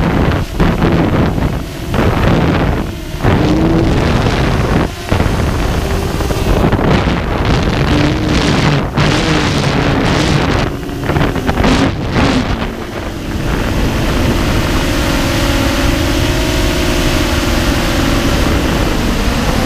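Wind rumbles and buffets across the microphone in flight.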